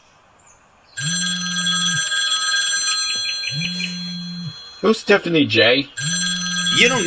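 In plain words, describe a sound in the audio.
A phone rings with a repeating electronic ringtone.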